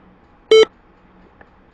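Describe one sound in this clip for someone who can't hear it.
A short computer error chime sounds.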